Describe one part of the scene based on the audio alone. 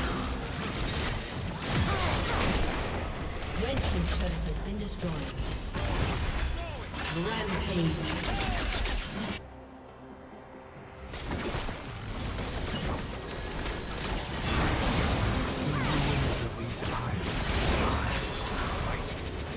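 Game spell effects whoosh and crackle during a battle.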